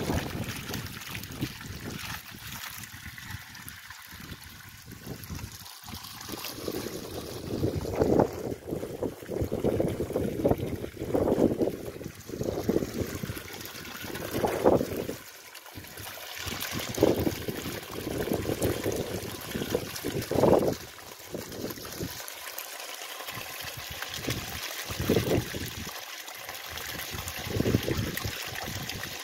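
Water gushes out of a pipe and splashes steadily onto the ground.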